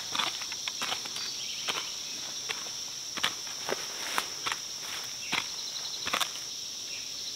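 A hoe scrapes and chops into dry soil.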